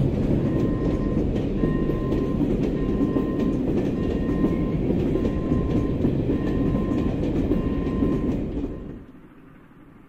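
Freight wagons rumble and clatter loudly along the rails close by.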